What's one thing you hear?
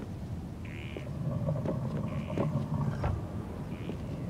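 A heavy wooden crate scrapes as it is pushed.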